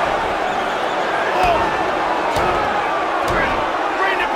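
Heavy blows thud dully against a body.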